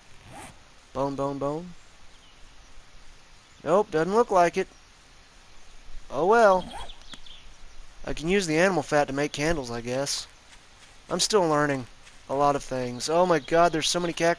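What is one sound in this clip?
A man talks casually into a microphone, close by.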